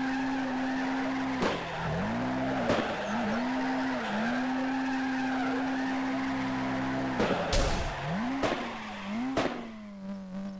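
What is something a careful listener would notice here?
A car engine revs high and drops in bursts as the car drifts.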